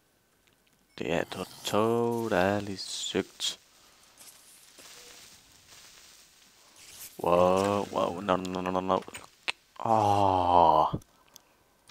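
A zombie groans and moans nearby.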